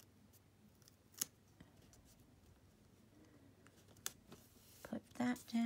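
Fingers peel and press a paper sticker onto a page.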